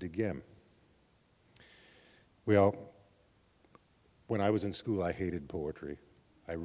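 An elderly man speaks slowly and expressively into a microphone, with pauses between phrases.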